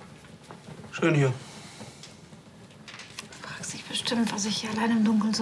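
A woman speaks quietly and emotionally nearby.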